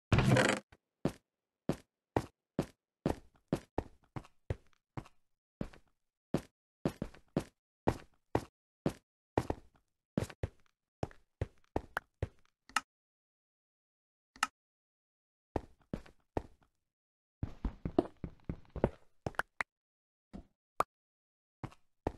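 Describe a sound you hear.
Pickaxe blows chip rhythmically at stone and earth blocks in a game.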